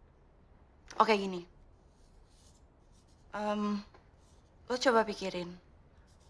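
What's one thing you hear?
A young woman answers quietly close by.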